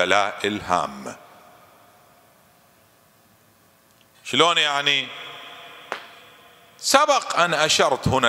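A man speaks with feeling through a microphone, his voice echoing in a large hall, in bursts with pauses.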